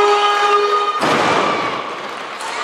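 A barbell loaded with bumper plates is dropped onto a lifting platform with a heavy thud.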